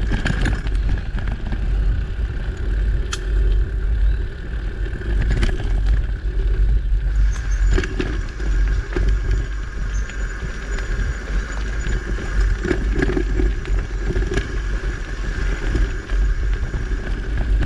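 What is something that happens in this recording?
Tyres rumble and crunch steadily over a dirt trail.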